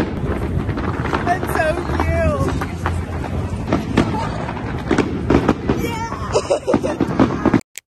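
A young woman cheers and laughs excitedly, close by.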